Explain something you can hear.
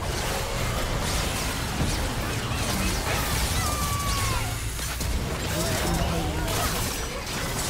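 Spell effects crackle and burst in a fast fight.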